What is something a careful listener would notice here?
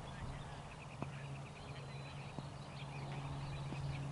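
A cricket bat hits a ball with a sharp crack outdoors.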